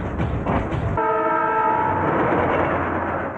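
A train horn blares.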